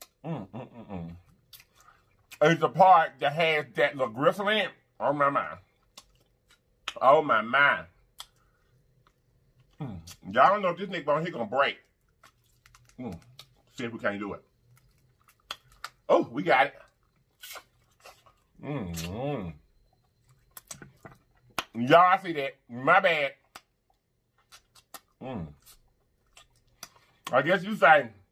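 A man chews and smacks his lips while eating.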